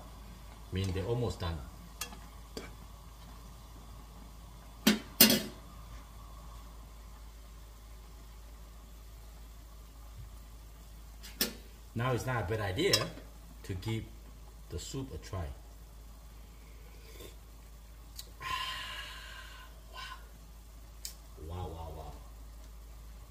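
Soup bubbles gently in a pan.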